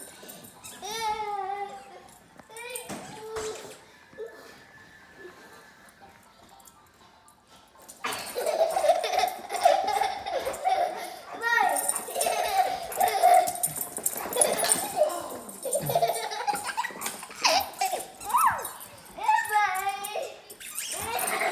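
A baby squeals and babbles nearby.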